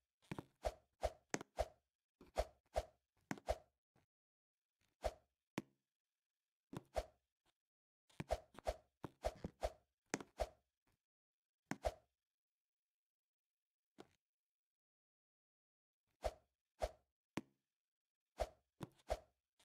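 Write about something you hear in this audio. Short, bouncy game sound effects pop in quick bursts as a character jumps and climbs.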